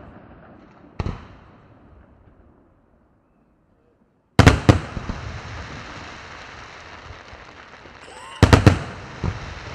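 Loud bangs boom from fireworks bursting overhead, echoing outdoors.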